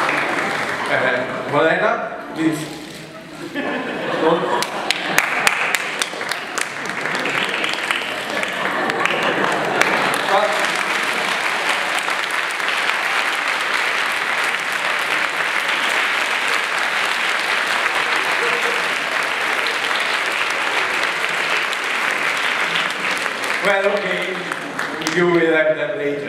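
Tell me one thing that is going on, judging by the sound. A man speaks through loudspeakers in a large echoing hall.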